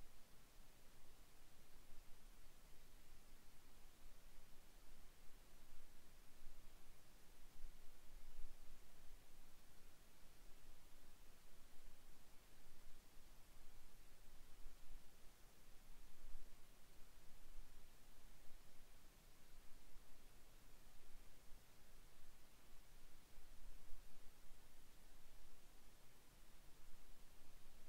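Wind buffets in low, gusty rumbles outdoors.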